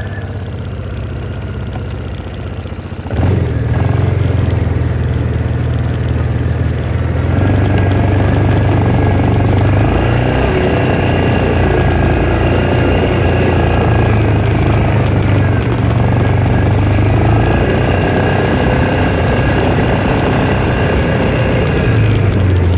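A utility vehicle engine hums steadily.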